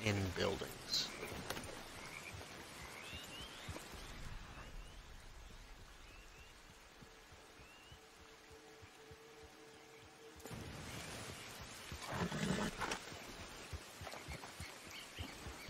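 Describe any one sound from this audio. A horse's hooves thud on soft ground at a gallop.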